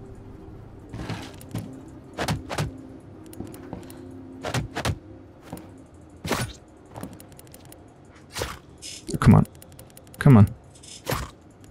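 Blows land with sharp thuds in a scuffle.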